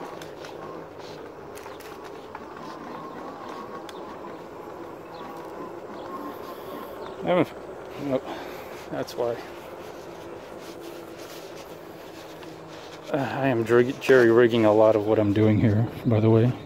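An electric bike motor whines steadily.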